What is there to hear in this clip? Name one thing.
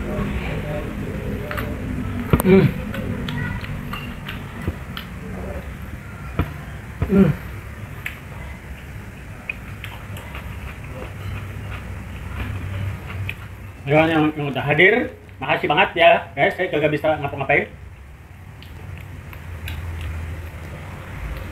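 A man gnaws and crunches on bone close by.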